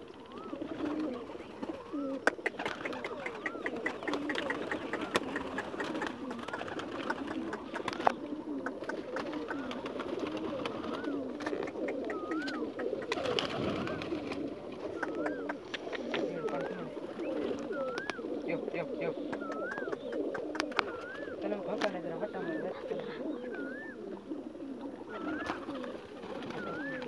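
Many pigeons coo steadily nearby.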